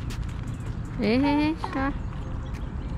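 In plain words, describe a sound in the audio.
A young child calls out in a high voice nearby.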